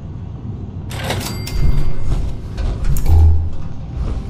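A heavy metal door slides open.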